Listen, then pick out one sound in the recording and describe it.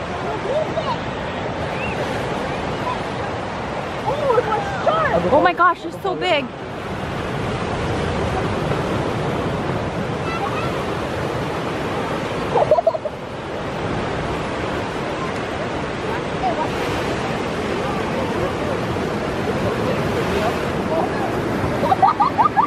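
Children talk and call out excitedly outdoors.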